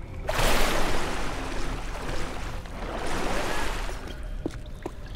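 Water swirls and sloshes as someone swims.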